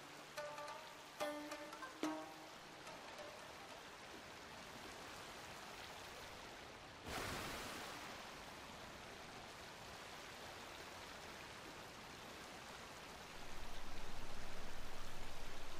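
A boat rushes through water with a steady hiss.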